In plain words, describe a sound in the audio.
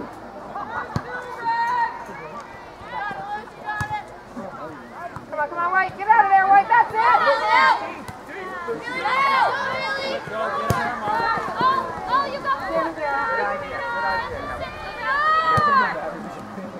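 A soccer ball is kicked with dull thuds.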